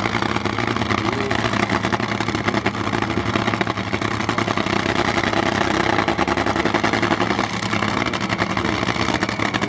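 A dragster engine idles with a loud, rough, rapid rumble.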